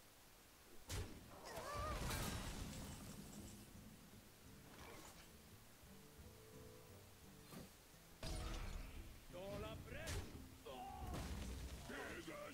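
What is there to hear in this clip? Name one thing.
Magical card-game effects whoosh, chime and crash in short bursts.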